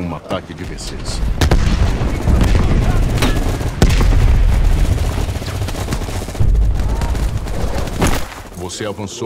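Deep booms and rumbling of a distant battle roll in.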